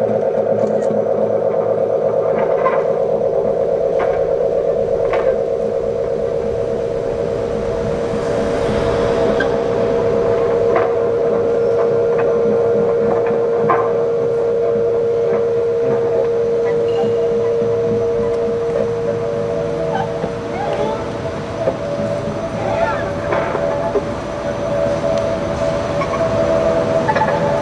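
A cello bows long, deep notes.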